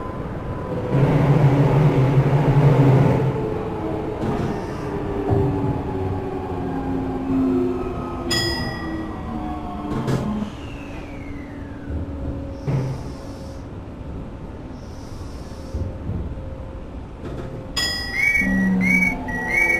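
An electric commuter train's traction motors whine, falling in pitch as the train slows.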